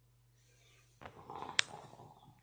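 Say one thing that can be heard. A phone rustles and knocks as it is moved.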